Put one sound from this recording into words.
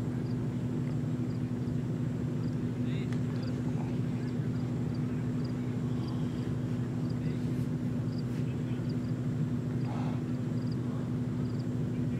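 Men talk quietly in the distance outdoors.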